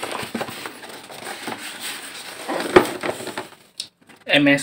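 Cardboard boxes scrape and rustle as they are handled.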